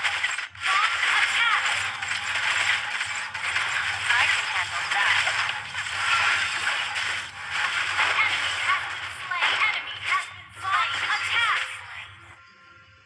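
Game battle effects clash, whoosh and burst rapidly.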